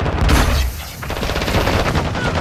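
A smoke grenade hisses loudly.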